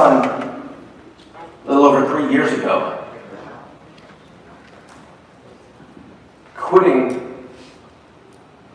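A middle-aged man speaks loudly and with pauses in a large echoing hall.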